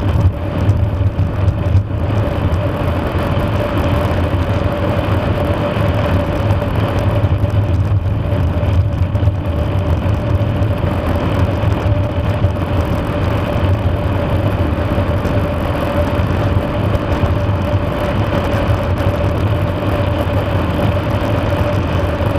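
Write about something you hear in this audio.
A motorcycle engine hums steadily at cruising speed.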